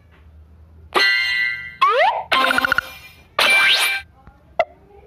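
Bright game jingles and chimes play.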